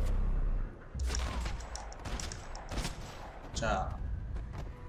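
Gunshots bang sharply several times.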